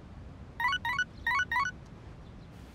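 A mobile phone chimes with a short message alert.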